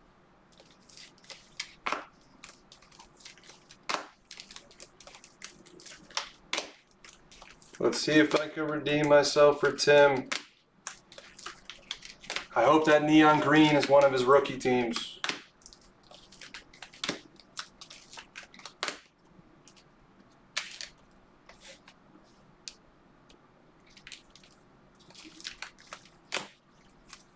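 Plastic card sleeves rustle and click under fingers.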